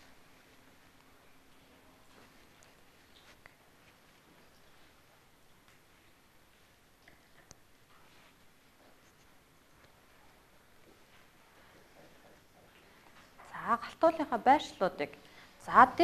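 Felt-tip markers scratch softly on paper.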